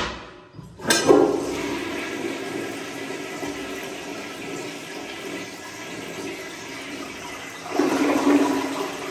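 A toilet flushes with a loud rush of swirling water.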